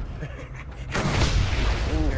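A second explosion roars and crackles.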